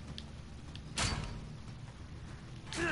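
A metal gate rattles and clanks.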